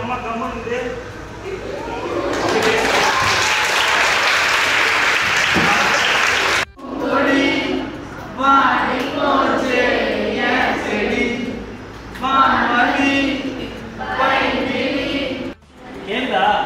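A young man speaks to a group in a room.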